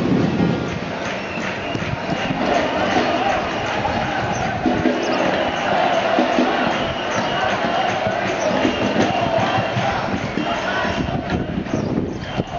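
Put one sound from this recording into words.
A large crowd chants and shouts loudly in unison outdoors.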